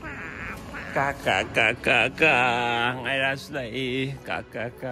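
A baby babbles close by.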